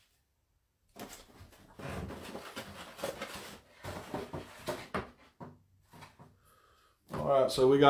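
A plastic carton crackles and clicks as it is handled and opened.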